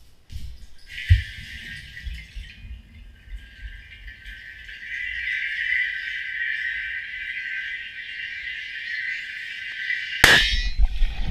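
Gas bubbles hiss steadily underwater.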